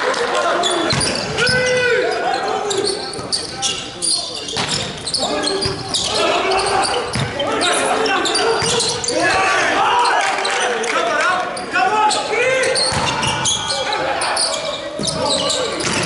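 A volleyball is struck hard, with sharp smacks echoing in a large hall.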